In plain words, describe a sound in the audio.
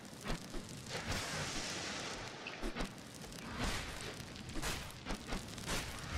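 Game sound effects burst and crackle in quick bursts.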